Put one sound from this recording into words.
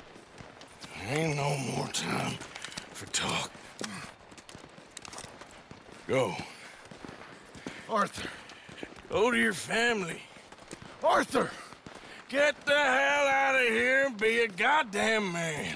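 A man answers in a low, gruff voice, close by.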